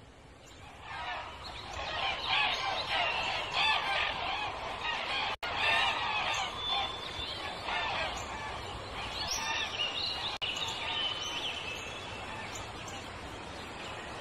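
A flock of birds calls and squawks overhead.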